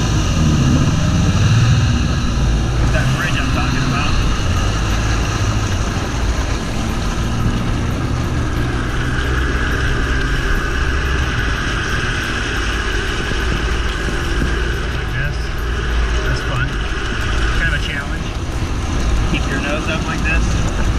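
Water splashes and hisses against a jet ski's hull.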